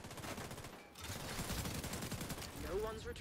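Rapid gunfire bursts loudly nearby.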